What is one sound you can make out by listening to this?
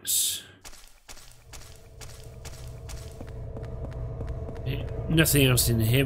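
Footsteps echo in a hollow corridor.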